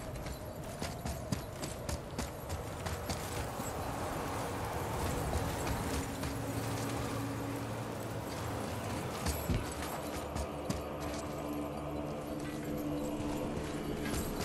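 Heavy footsteps crunch through snow.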